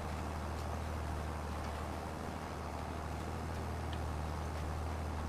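A seed drill rattles over soil.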